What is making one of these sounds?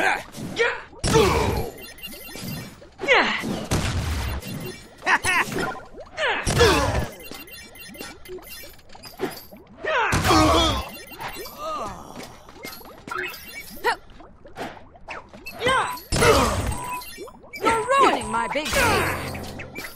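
Punches and blasts land with loud thuds during a fight.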